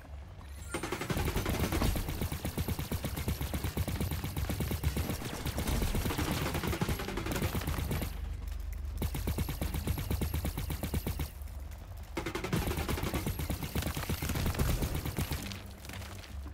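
Rapid laser shots fire in quick bursts.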